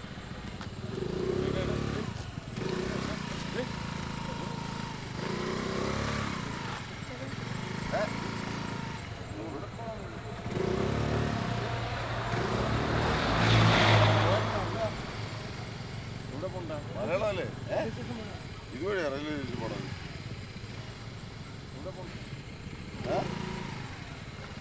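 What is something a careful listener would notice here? Several men talk nearby.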